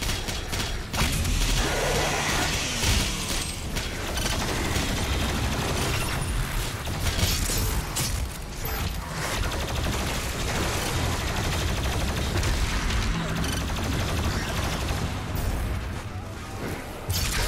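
Monsters roar and snarl.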